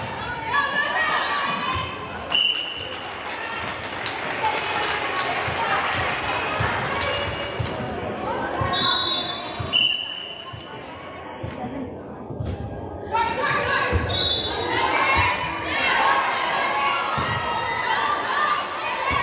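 Young girls chatter and shout across a large echoing gym.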